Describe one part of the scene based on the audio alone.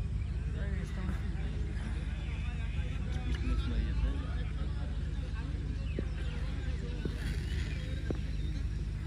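Men call out and chatter in the distance outdoors.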